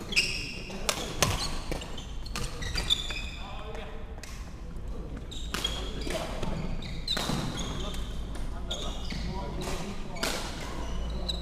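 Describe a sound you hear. Sports shoes squeak on a wooden court floor.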